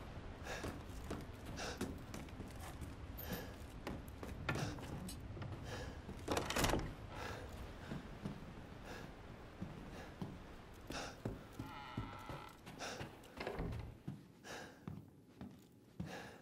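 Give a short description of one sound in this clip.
Footsteps thud across wooden floorboards.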